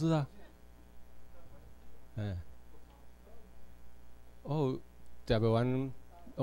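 A man speaks through a microphone in a room with some echo, in short, drawn-out bursts.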